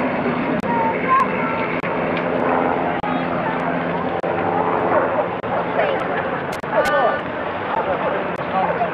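A crowd of people chatter nearby outdoors.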